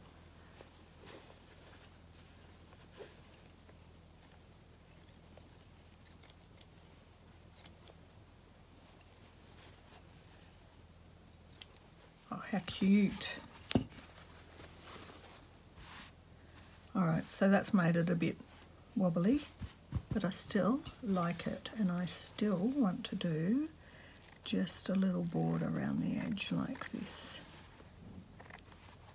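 Scissors snip through fabric close by.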